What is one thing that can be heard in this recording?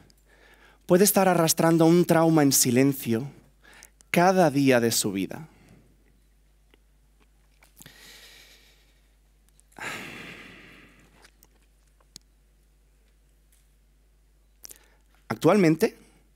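A young man speaks slowly and expressively through a microphone in a large hall.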